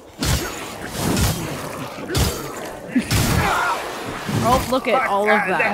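Heavy sword blows land with loud crunching impacts.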